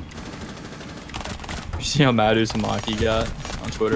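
A rapid burst of gunfire rings out.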